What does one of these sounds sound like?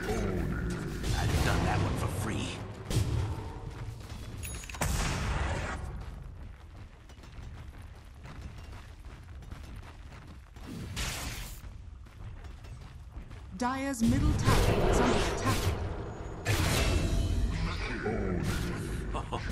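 Magic blasts crackle and boom in a video game battle.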